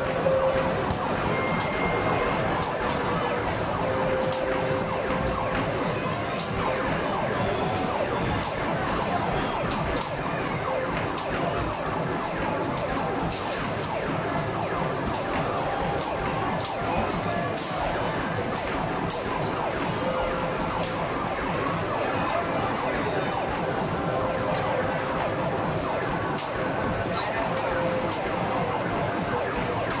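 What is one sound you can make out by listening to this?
Arcade machines play loud, busy electronic music and sounds.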